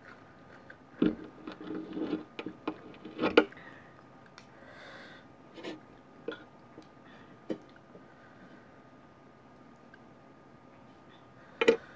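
A young woman chews food close by.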